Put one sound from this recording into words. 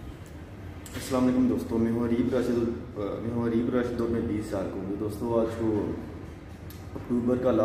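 A young man talks calmly and close to the microphone.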